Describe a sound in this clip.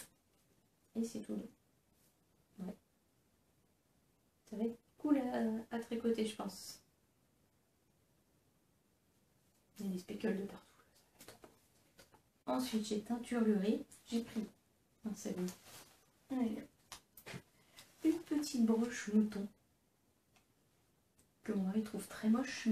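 A young woman talks calmly up close.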